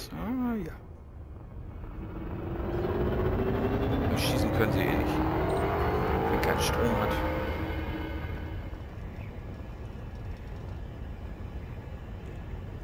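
A spaceship engine hums, swelling and rising in pitch, then settling.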